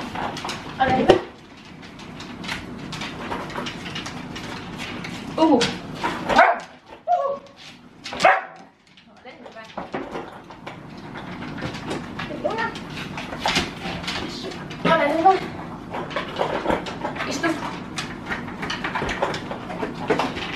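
Dogs lick and clatter food in plastic bowls.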